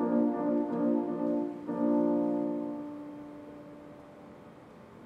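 A grand piano plays chords that ring out and slowly fade.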